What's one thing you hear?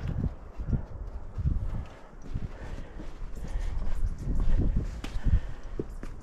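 Footsteps scuff on rock close by.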